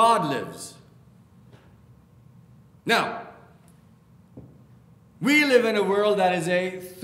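A middle-aged man speaks with emphasis through a microphone in an echoing hall, pausing between phrases.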